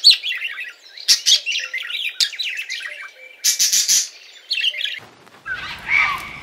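A cockatoo screeches loudly.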